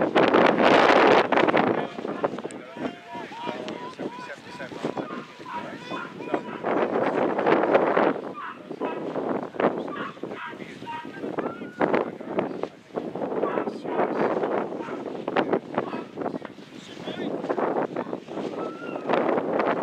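Wind gusts across an open field outdoors.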